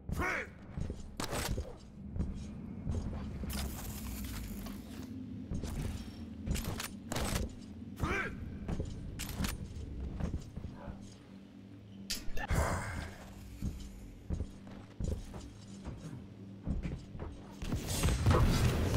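Footsteps thud and jump landings knock on stone.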